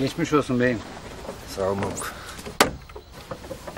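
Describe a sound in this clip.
An elderly man speaks with feeling, close by.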